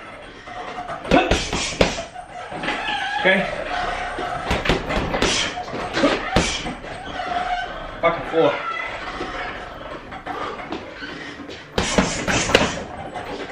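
Gloved fists thump repeatedly against a heavy punching bag.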